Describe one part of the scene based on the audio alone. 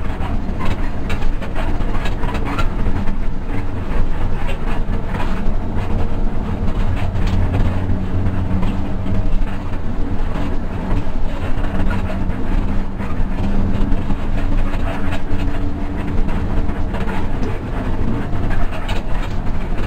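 A bus engine hums and drones steadily.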